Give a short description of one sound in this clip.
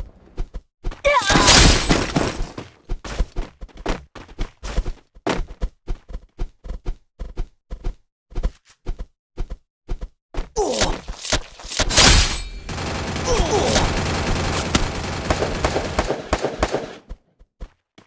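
Game sound effects swell and crash loudly.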